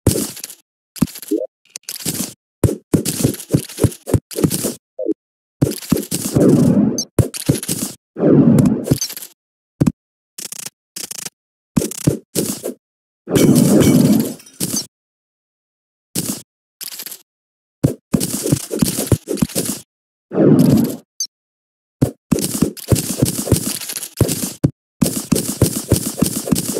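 A pickaxe chips at rock in quick taps.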